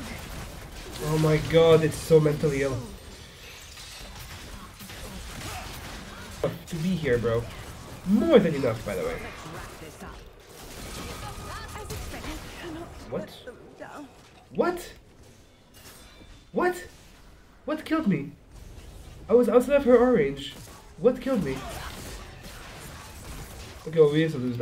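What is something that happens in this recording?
A young man talks with animation, heard close through a headset microphone.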